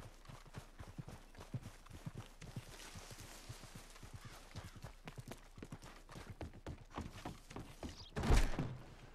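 Footsteps thud steadily on ground and wooden boards.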